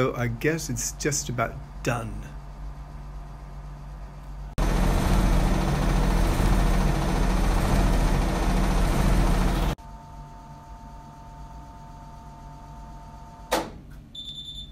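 A washing machine hums quietly.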